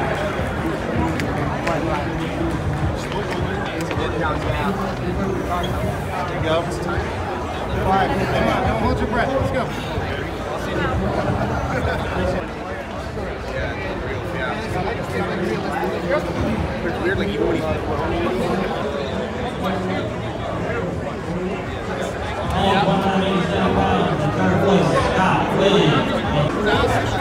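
A crowd of men and women chatters all around.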